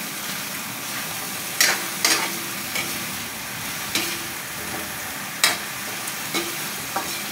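Vegetables sizzle in oil in a wok.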